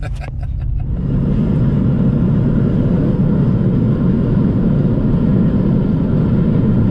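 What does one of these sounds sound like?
Tyres roar on the road as the car drives at speed.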